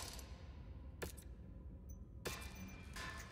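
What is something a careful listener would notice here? Short interface clicks sound.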